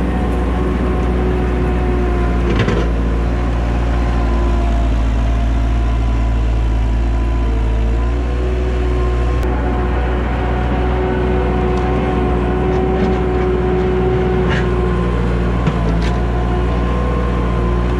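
A skid steer loader's diesel engine rumbles loudly and steadily close by.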